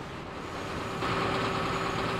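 A fire engine siren wails nearby.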